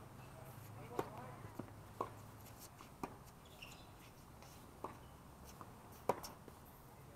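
Tennis balls are struck with rackets, with sharp pops.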